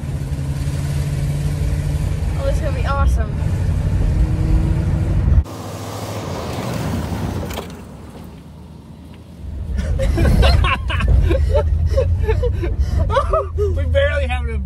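A girl laughs and shouts excitedly.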